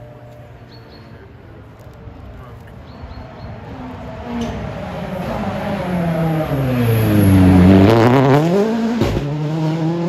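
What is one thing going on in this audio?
A rally car engine roars closer and speeds past with a rising then falling pitch.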